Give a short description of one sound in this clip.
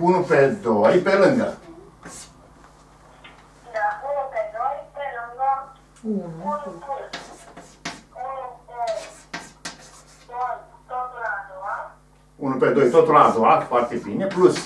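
An elderly man speaks calmly, explaining.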